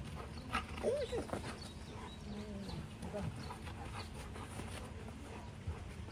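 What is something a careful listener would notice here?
A dog's paws patter quickly across grass.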